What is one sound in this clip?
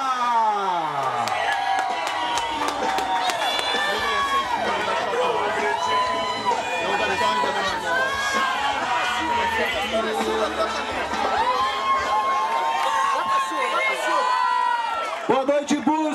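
A crowd of people sings and chants loudly close by.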